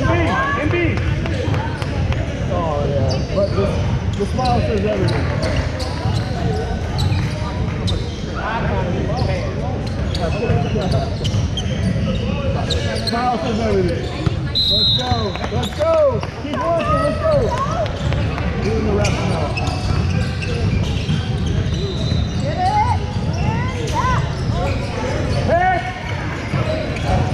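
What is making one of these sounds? Many voices chatter and call out throughout a large echoing gym.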